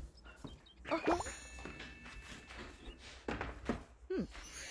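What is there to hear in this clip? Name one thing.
A bright magical chime twinkles.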